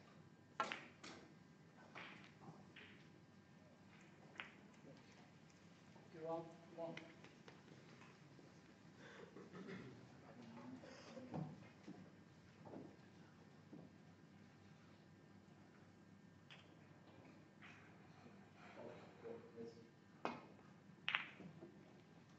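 Snooker balls click together on the table.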